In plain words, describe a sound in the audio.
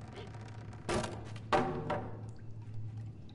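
A wooden plank clatters onto the floor.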